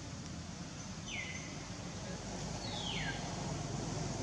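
A monkey gives short, high, falling squeals close by.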